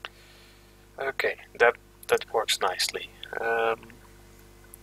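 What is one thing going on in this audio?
A young man speaks casually into a close microphone.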